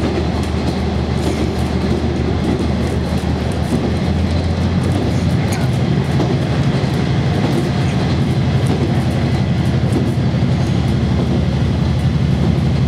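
Railcar wheels rumble and clatter on the rails.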